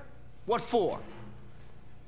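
A man asks a question calmly.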